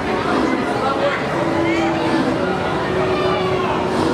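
A steam locomotive rolls slowly into a station.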